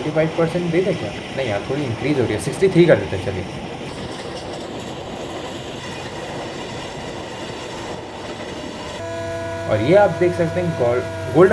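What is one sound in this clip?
A train rumbles along the rails.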